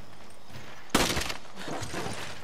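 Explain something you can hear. A bone skull shatters and its pieces clatter down.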